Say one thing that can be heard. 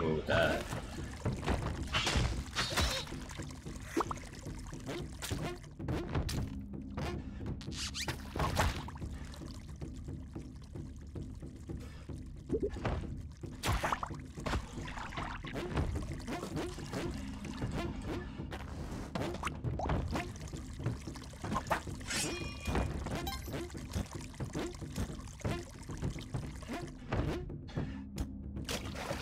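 Video game music plays steadily throughout.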